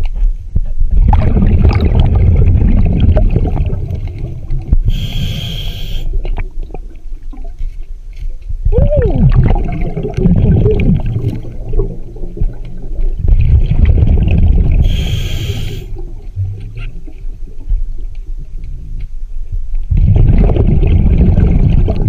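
Bubbles from a diver's breathing gear gurgle and rumble underwater in loud bursts.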